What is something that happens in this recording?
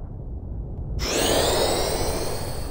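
A magic healing spell shimmers with rising chimes.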